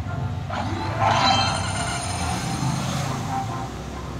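Coins jingle brightly in a short burst.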